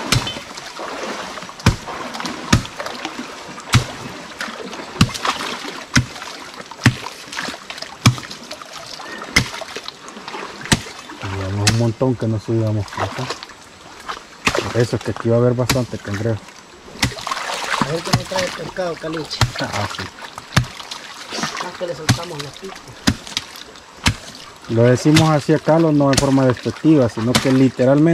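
Water sloshes around legs wading through a shallow stream.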